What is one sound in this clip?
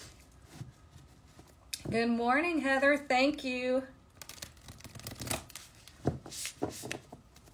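Cards and packaging rustle and tap against a table.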